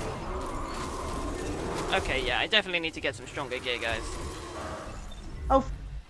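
A magical energy beam crackles and hums.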